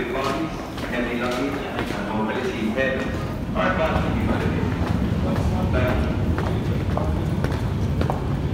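Footsteps tap on a hard floor in a large echoing hall.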